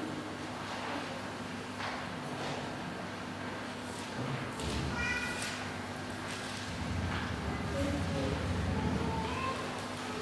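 A man speaks into a microphone in an echoing hall.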